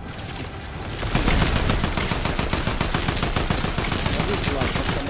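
Gunshots fire rapidly in a game.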